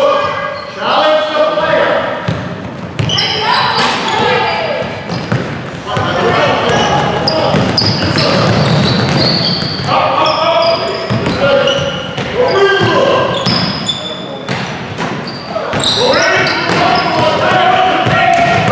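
Spectators shout and cheer loudly in a large echoing gym.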